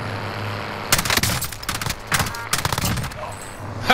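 Rifle shots crack in quick succession.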